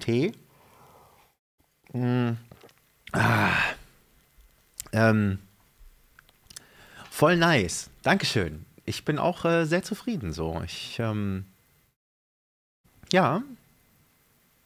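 A man speaks casually and close into a microphone, with pauses.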